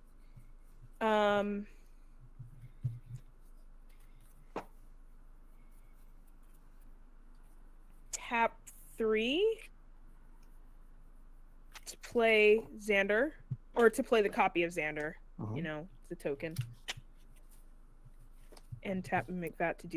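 A young woman speaks with animation through a microphone, in short bursts.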